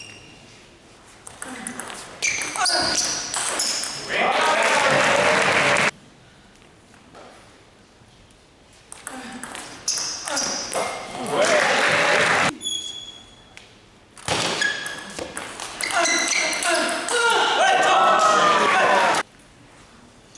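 A ping-pong ball clicks back and forth off paddles and a table in a large echoing hall.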